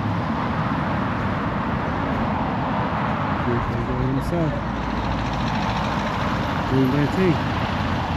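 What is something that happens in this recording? Cars drive past on a road nearby.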